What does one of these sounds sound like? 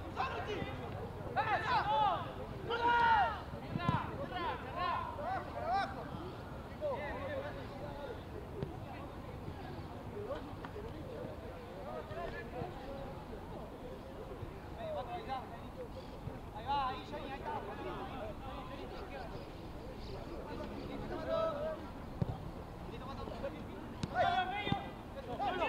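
Young men shout to each other outdoors during a football match.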